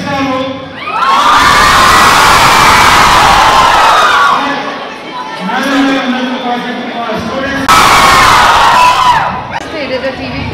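A large crowd of young people cheers and screams loudly.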